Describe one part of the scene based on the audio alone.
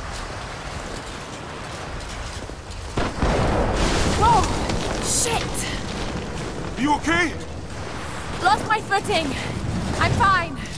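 Boots crunch through deep snow.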